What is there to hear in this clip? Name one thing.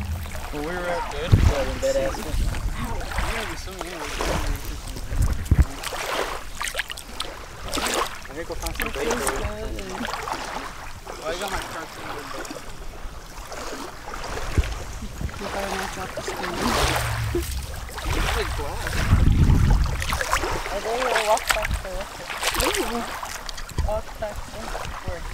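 Small waves lap gently against a sandy shore.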